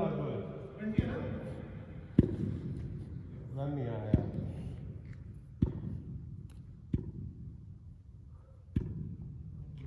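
A cricket bat taps repeatedly on the floor.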